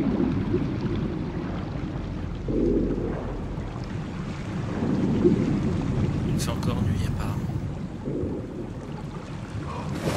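A fire crackles and roars.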